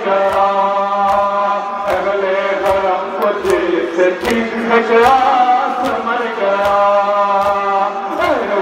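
A man chants a lament loudly through a microphone.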